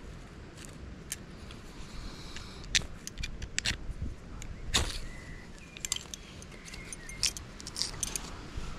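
A fire steel is struck, scraping with sparks.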